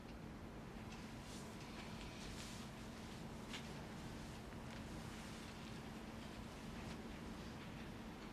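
Fabric rustles softly as a young man shifts on a bed.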